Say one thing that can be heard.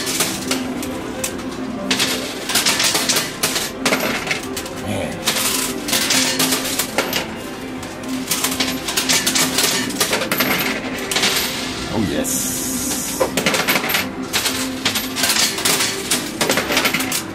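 Coins clatter and clink as a pusher shelf slides them together.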